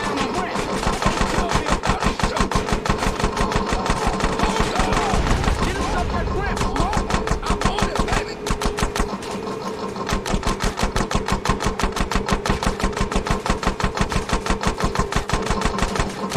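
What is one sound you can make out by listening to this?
A motorbike engine roars steadily.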